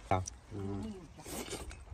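A young man slurps food noisily.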